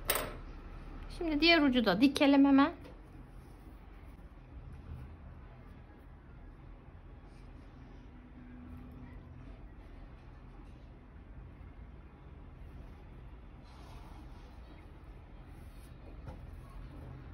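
Yarn rustles softly as hands handle a crocheted piece.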